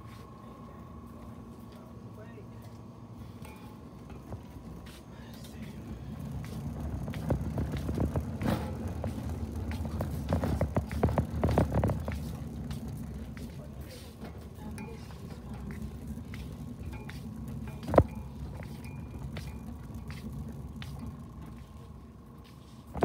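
Shopping cart wheels rattle and roll over a hard floor.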